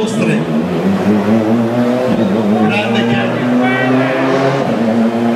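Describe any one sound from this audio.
A rally car engine roars and revs loudly.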